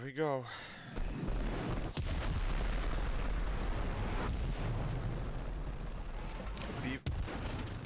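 A rocket engine ignites and roars steadily as a rocket lifts off.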